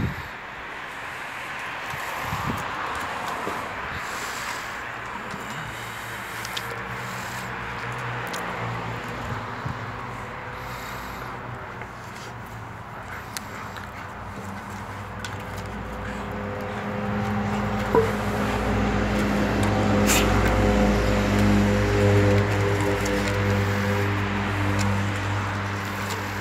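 A dog gnaws and chews on a stick.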